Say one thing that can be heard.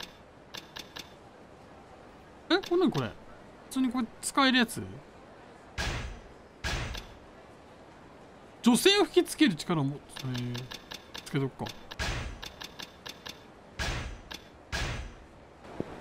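Short electronic menu blips and chimes sound.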